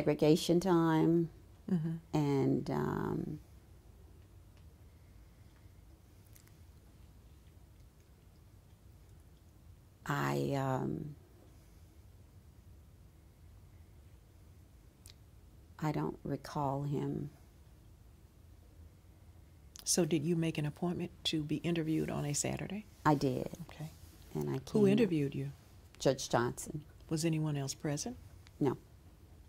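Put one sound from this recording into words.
An older woman speaks calmly and thoughtfully, close to a microphone, with pauses.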